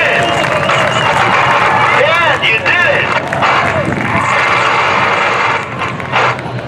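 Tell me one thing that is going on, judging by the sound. A crowd cheers and shouts loudly nearby.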